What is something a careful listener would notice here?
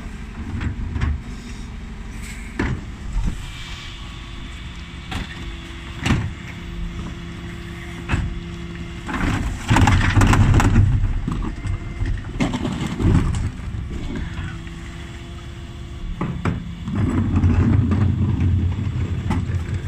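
Wheelie bins rattle as they are rolled over pavement.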